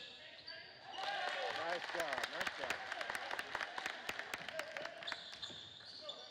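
A crowd cheers loudly in an echoing gym.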